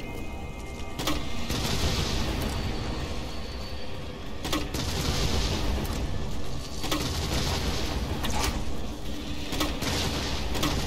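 Explosions roar and rumble repeatedly.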